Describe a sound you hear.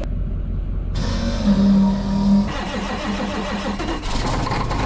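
A starter motor whines as a large diesel engine cranks.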